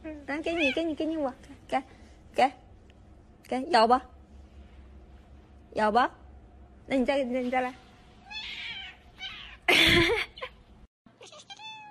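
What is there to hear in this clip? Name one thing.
A cat yowls in short, rising and falling bursts.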